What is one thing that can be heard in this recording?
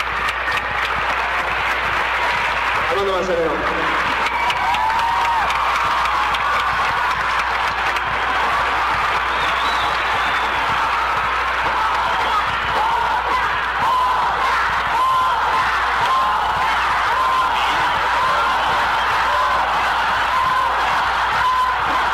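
A man sings into a microphone with feeling, heard through loudspeakers.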